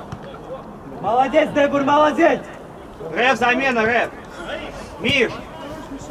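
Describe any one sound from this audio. Young men shout across an outdoor pitch.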